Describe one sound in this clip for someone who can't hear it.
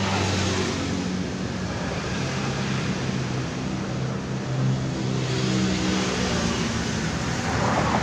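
A brush scrapes softly as it spreads liquid over rubber.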